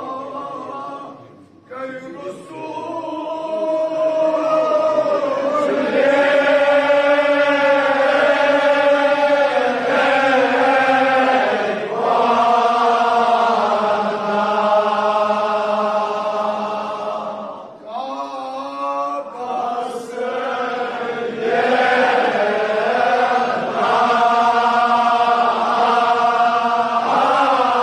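A man chants loudly and mournfully through a loudspeaker in an echoing hall.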